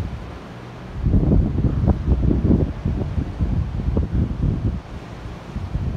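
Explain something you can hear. Outdoors, wind gusts rumble across the microphone.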